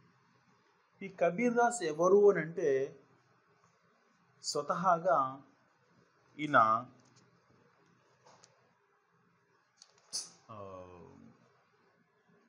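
A man speaks calmly and clearly, close to a microphone, in short phrases with pauses.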